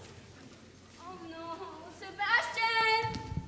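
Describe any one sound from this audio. A teenage girl sings out loudly in a large echoing hall.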